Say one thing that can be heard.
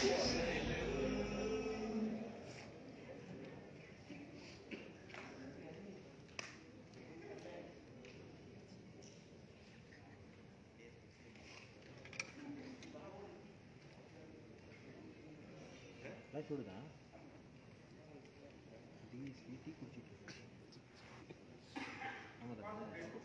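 An audience murmurs quietly.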